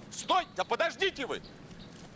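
A man runs over grass.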